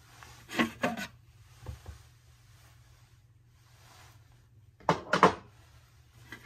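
A glass clinks against a hard shelf.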